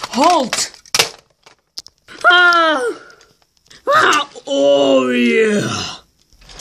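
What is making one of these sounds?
Plastic toy train cars click and clatter as they are set onto a track.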